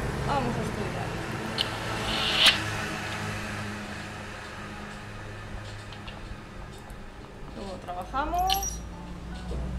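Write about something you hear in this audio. A young woman speaks briefly through a microphone.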